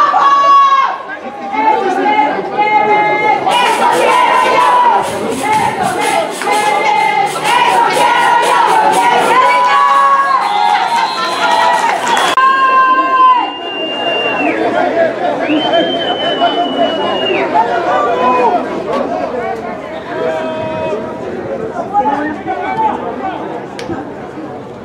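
Young men shout and cheer from nearby outdoors.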